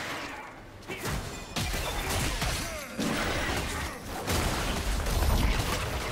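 Game spell effects whoosh and crackle in bursts.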